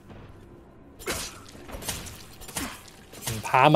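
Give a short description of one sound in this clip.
A knife swishes and slashes through the air.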